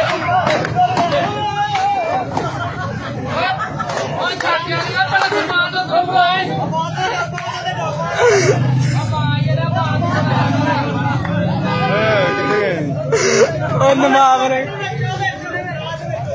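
A crowd of men shouts and talks excitedly nearby, outdoors.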